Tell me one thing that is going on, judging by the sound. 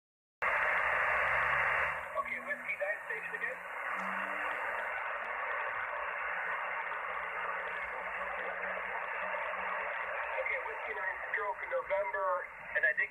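A radio receiver hisses with crackling static from its loudspeaker.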